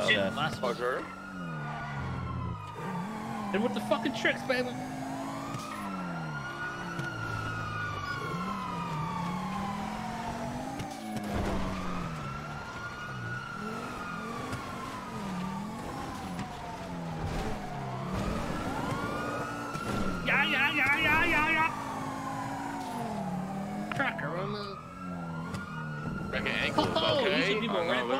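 A car engine revs and drones as the car speeds along.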